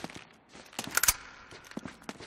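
A pistol fires a single loud shot.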